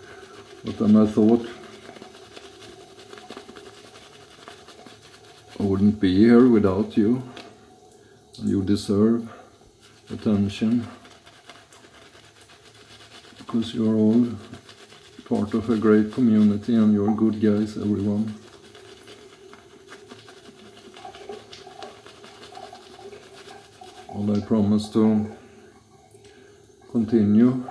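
A shaving brush swishes lather across stubble.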